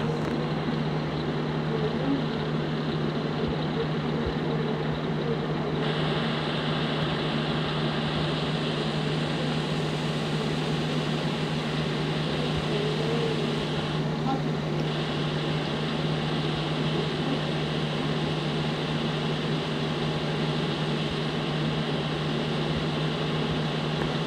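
A simulated semi-truck engine drones at cruising speed.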